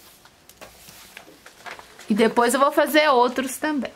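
Paper rustles as sheets are lifted and moved.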